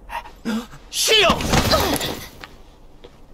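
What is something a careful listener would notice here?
A young man shouts loudly and urgently.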